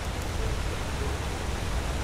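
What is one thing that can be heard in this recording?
Water rushes over rocks in a stream.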